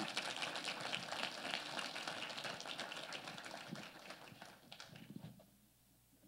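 A crowd claps in a large room.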